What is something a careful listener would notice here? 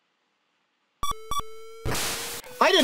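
Chiptune video game beeps sound in quick succession.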